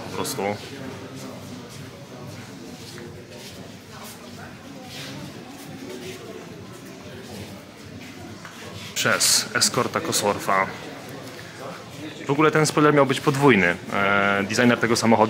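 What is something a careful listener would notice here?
A crowd of adult men and women chatter indistinctly in a large echoing hall.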